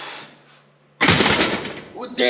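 A loaded barbell clanks as it is set down on its rack.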